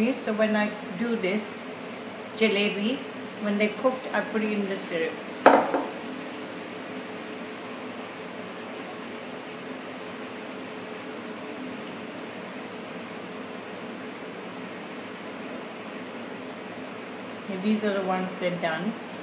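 Hot oil sizzles steadily as batter fries in a pan.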